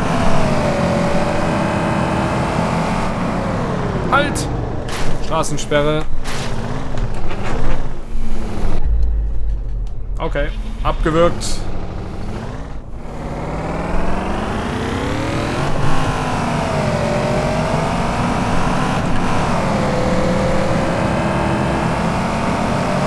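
A car engine hums and revs, its pitch rising and falling as it speeds up and slows down.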